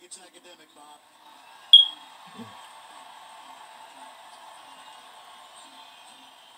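A crowd cheers loudly through a television.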